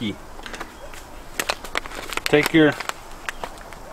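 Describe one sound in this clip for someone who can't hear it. Plastic rustles as a man handles a bag.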